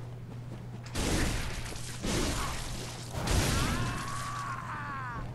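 Blades slash and strike with heavy thuds.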